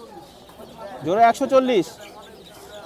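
A hen squawks loudly once.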